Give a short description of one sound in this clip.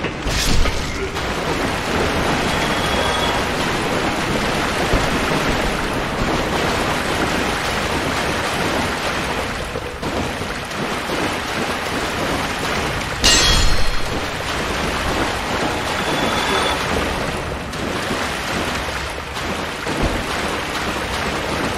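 Armoured footsteps splash through shallow water.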